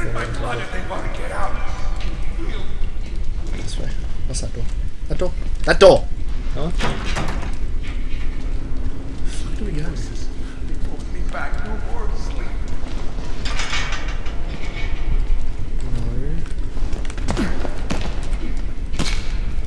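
Two young men talk and laugh close to a microphone.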